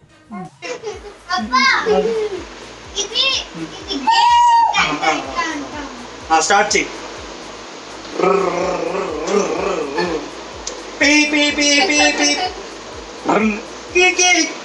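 A young girl talks and giggles playfully.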